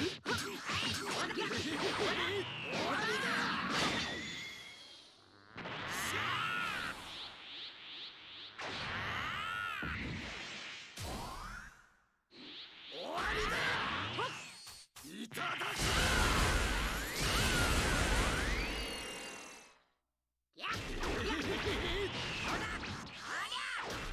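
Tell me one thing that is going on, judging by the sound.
Punches and blasts crack and thud in quick succession.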